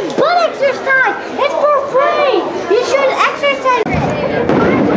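A young boy talks and laughs excitedly close by.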